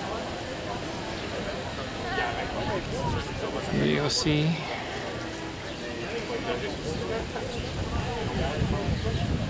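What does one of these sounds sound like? A crowd murmurs and chatters nearby outdoors.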